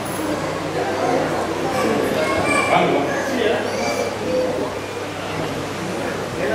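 Men and women chatter in a crowd nearby.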